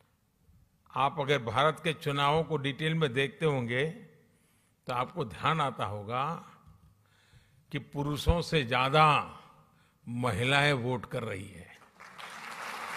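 An elderly man speaks with animation through a microphone in a large hall.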